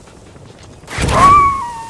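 A balloon shoots up into the air with a loud whoosh.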